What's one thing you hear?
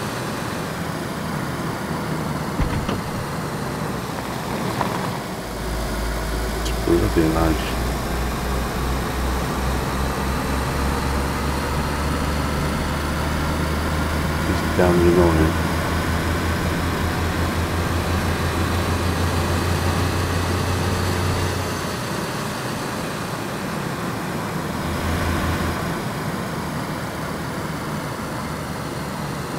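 Tyres roll over an asphalt road.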